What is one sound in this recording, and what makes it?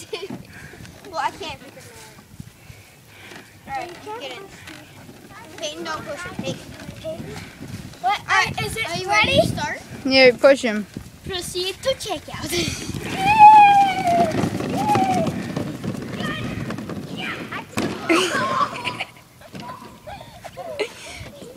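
Young children talk and shout excitedly close by.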